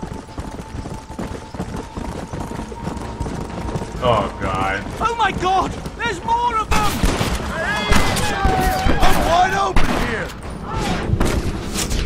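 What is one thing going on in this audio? Horses gallop with quick, heavy hoofbeats.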